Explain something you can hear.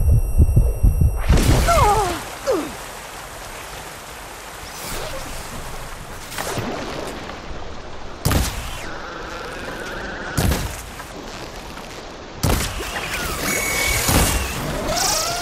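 Explosions burst with a loud boom.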